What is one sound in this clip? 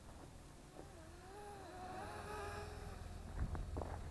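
A small drone buzzes overhead, rising and falling in pitch as it passes close.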